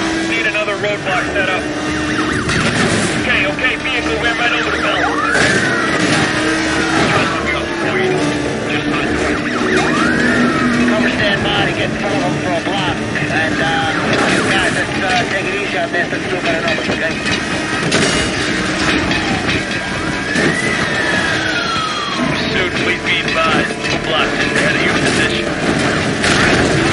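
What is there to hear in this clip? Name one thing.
A racing car's engine roars steadily at high speed.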